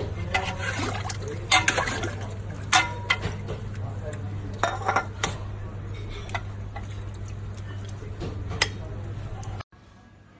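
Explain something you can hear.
A metal ladle clinks against a pot and a plate.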